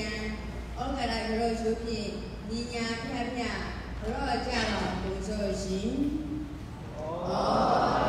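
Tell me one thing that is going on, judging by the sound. An elderly man chants slowly through a microphone in an echoing hall.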